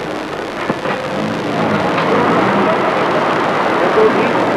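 Street traffic rumbles and hisses outside.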